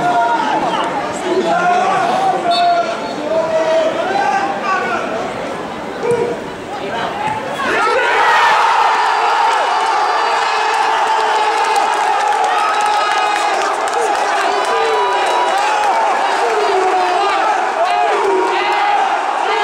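A large crowd sings and chants in an open stadium.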